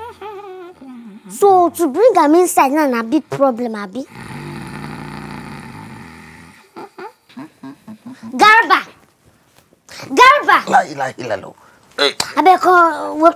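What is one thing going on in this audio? A young boy speaks loudly and with emotion close by.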